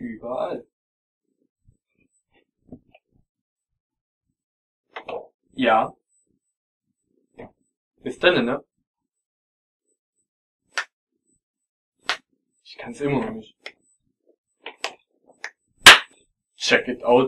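A young man speaks in short bursts close to a microphone, with pauses between.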